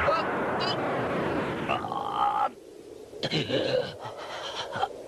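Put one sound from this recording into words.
A young man speaks firmly.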